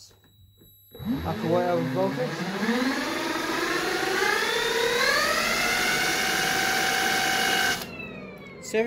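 An electric fan whirs, rising steadily in pitch as it speeds up.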